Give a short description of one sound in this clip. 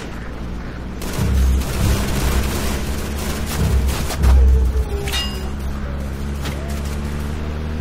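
Tank tracks clatter and squeak on the road.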